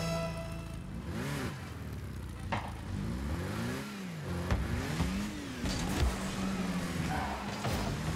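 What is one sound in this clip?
A game car's engine hums and revs up and down.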